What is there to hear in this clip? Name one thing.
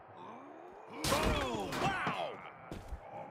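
A heavy body slams down onto a table with a loud crash.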